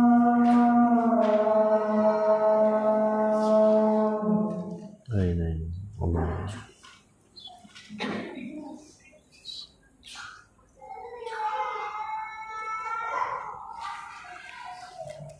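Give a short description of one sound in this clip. A young man recites in a long, melodic chant close by, pausing between phrases.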